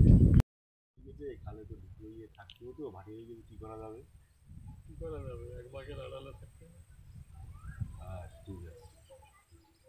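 A middle-aged man talks calmly nearby, outdoors.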